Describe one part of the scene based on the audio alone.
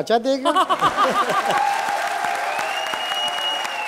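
A woman laughs loudly into a microphone.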